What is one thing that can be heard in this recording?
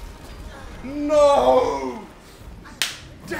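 A young man shouts in excitement.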